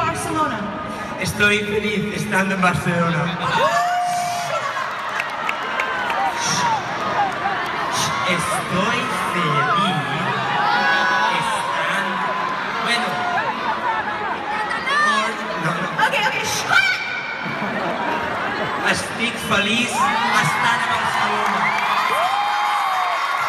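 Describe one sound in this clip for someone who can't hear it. A large crowd cheers and sings along nearby.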